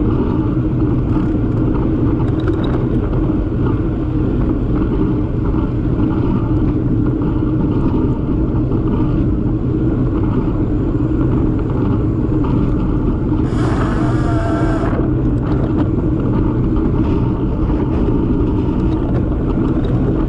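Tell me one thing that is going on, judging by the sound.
Wind buffets loudly against a moving bicycle outdoors.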